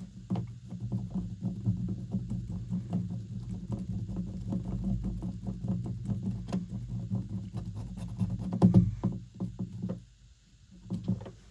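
A screwdriver scrapes and clicks against a screw.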